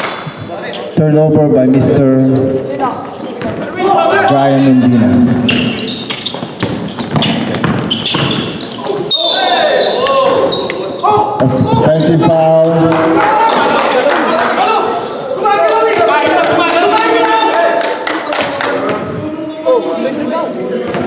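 Young men shout and call out to each other on a court.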